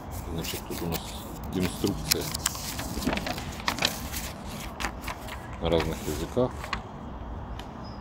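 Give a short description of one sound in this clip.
Paper and cardboard rustle and crinkle as it is handled.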